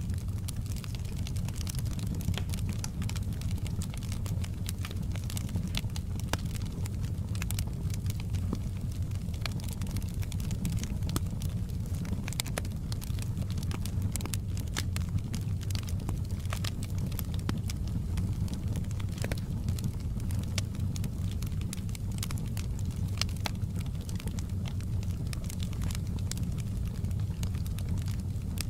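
A wood fire crackles and pops steadily.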